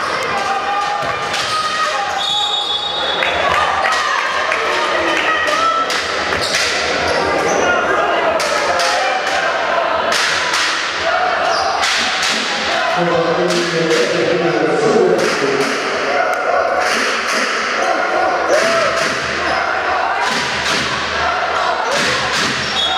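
Basketball shoes squeak on a wooden court.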